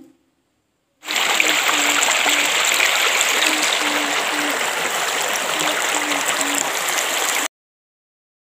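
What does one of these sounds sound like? Water rushes and splashes over rocks in a shallow stream.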